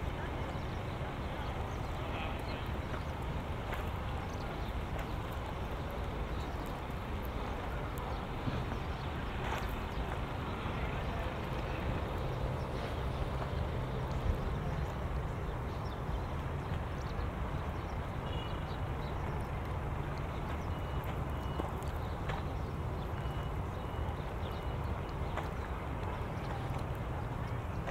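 Footsteps crunch on dry sand.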